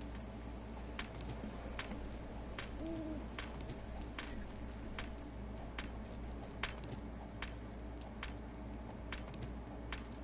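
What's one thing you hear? A stone axe knocks sharply on stone at a steady pace.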